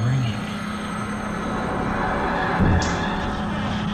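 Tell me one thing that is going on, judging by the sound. A door swings slowly open with a soft creak.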